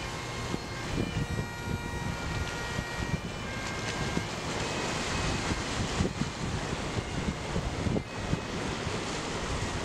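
Waves wash and splash over rocks along a shore.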